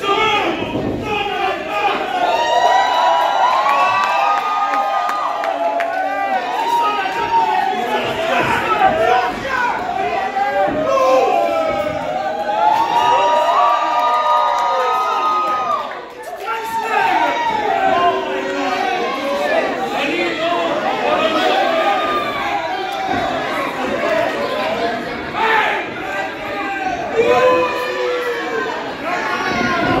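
A large crowd chants and cheers loudly in an echoing hall.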